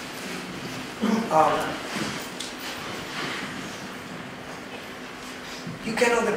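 A middle-aged man sings with feeling, close by, in short bursts.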